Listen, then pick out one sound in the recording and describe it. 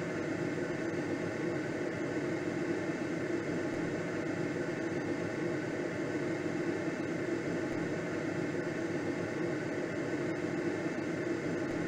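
Wind rushes steadily past a gliding aircraft's canopy.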